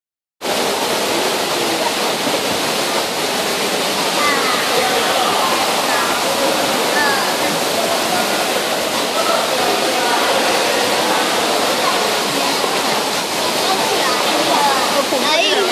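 Children's voices chatter and shout, echoing around a large indoor pool.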